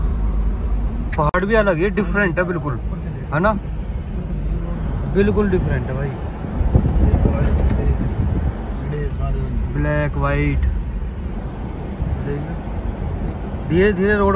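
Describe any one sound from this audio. A car engine rumbles steadily from inside a moving vehicle.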